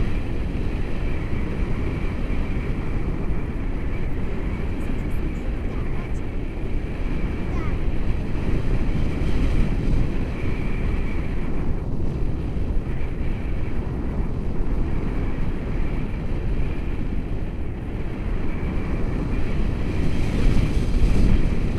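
Strong wind roars and buffets against a microphone outdoors.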